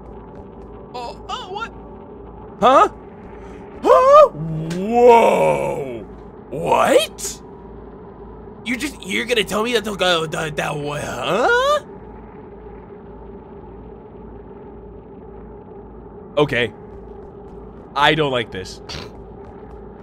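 A young man talks animatedly into a close microphone, in short bursts.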